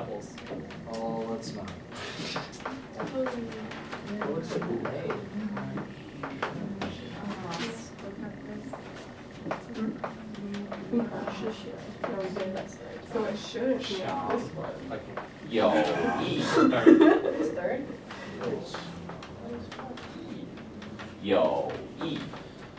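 Several young men and women talk and chatter at once, close by.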